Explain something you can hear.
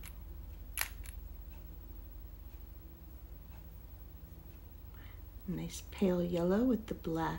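A small glass bottle clicks softly as its cap is unscrewed.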